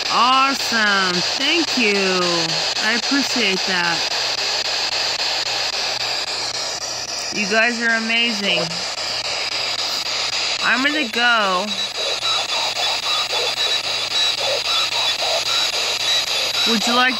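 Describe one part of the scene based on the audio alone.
A small radio hisses and crackles with static as it sweeps rapidly through stations.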